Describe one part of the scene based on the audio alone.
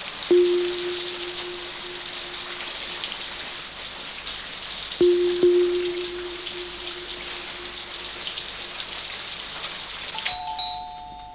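Heavy rain pours down in strong wind outdoors.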